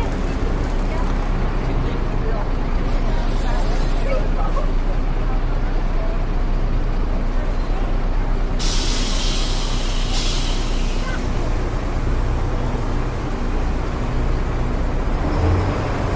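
A crowd of people chatters nearby.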